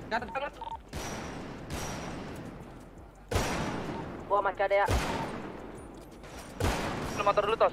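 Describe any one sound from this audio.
Gunshots ring out one at a time, each with a short echo.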